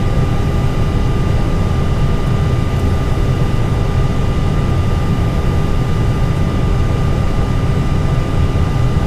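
Aircraft engines rumble and roar steadily.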